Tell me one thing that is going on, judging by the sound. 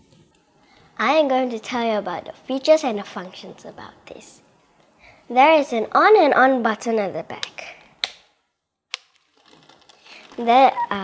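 A young girl talks with animation close to a clip-on microphone.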